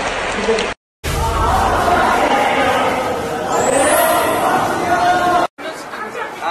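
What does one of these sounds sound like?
Young men shout and cheer excitedly.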